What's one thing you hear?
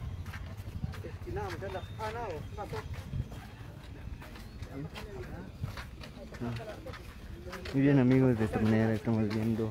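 Several men and women talk nearby.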